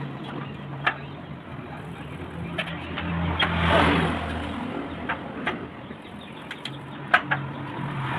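Metal tools clink against each other.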